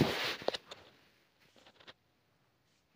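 Cloth rustles and swishes close by.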